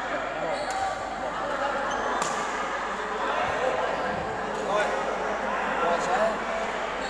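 Badminton rackets sharply strike a shuttlecock.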